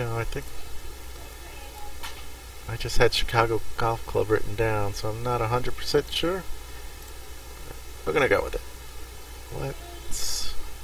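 A middle-aged man speaks casually into a close microphone.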